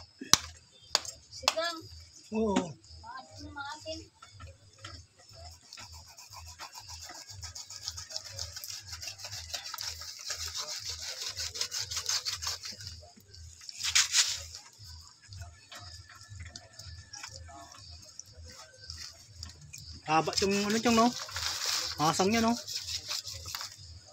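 A knife slices and scrapes through raw meat.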